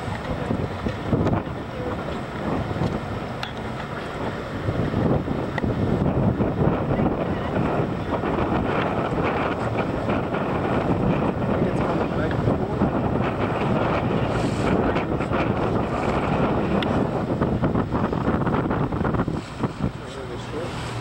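Choppy waves slap and splash against a moving boat.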